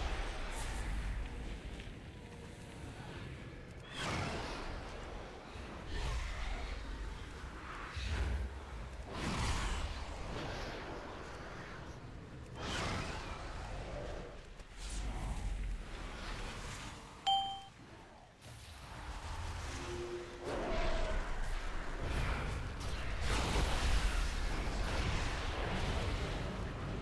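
Magic spells whoosh and crackle in a fierce battle.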